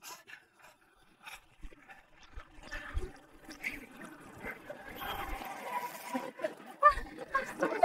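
Paddles splash in choppy water.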